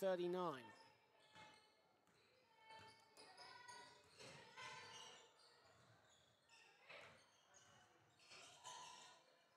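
Sneakers squeak on a wooden court floor.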